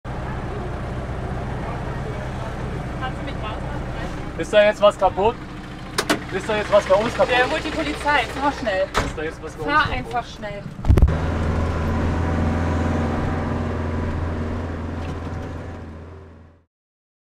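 A vehicle engine drones steadily from inside the cab.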